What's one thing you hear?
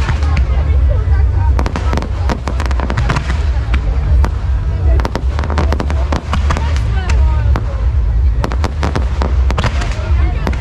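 Fireworks whoosh and whistle as they launch.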